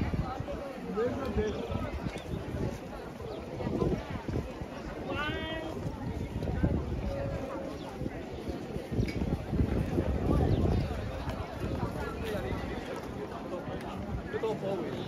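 A crowd of people chatter and murmur nearby outdoors.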